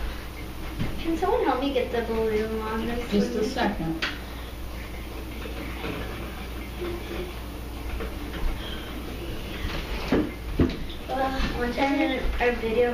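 A young girl talks nearby.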